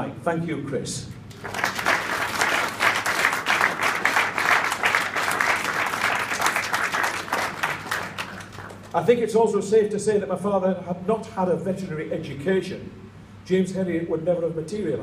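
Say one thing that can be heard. An elderly man speaks calmly through a microphone and loudspeakers.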